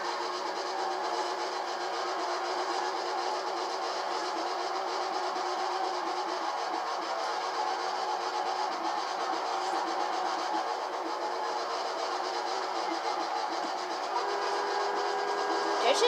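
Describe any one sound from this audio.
A sports car engine roars and revs hard.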